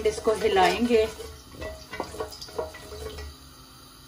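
A wooden spoon scrapes and stirs seeds in a metal pan.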